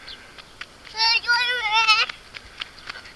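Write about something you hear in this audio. A small child squeals in a high voice nearby.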